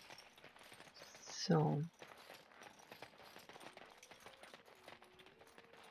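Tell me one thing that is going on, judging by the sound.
Footsteps tread softly on forest ground.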